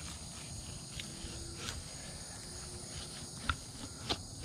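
Wet fish slaps and knocks against a wooden board.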